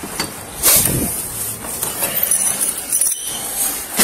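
A heavy door is pushed open with a thud.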